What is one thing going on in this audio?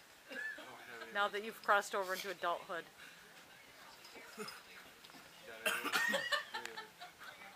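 Young men laugh nearby.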